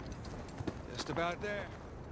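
A man answers calmly, nearby.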